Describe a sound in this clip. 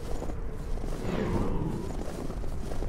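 A heavy blade swishes through the air.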